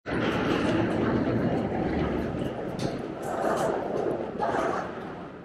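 A moving walkway hums steadily.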